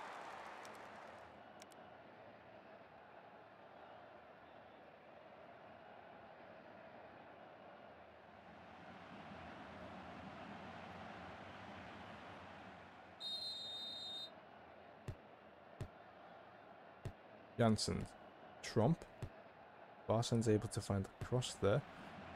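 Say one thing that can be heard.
A crowd murmurs steadily in a stadium.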